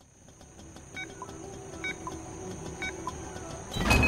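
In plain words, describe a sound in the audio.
A countdown beeps three times in even steps.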